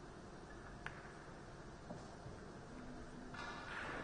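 Two balls knock together.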